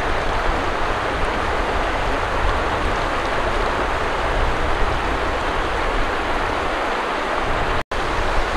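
A river rushes and splashes over stones nearby.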